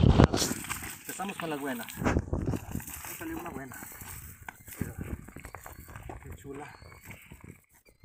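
A wet net rustles onto stones.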